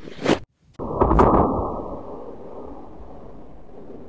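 A balloon bursts with a loud pop.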